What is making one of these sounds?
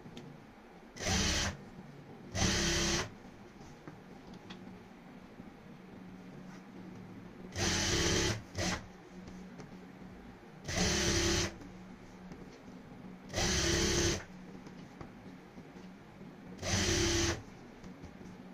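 A sewing machine whirs in short bursts as it stitches.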